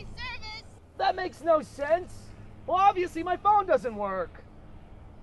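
A young man calls out loudly outdoors.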